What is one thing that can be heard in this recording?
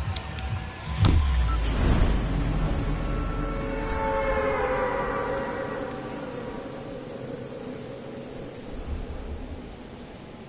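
Wind rushes loudly, then slowly fades.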